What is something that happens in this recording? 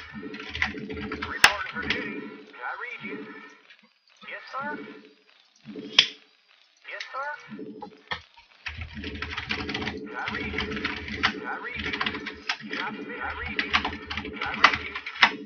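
Short electronic acknowledgement beeps sound as units are ordered.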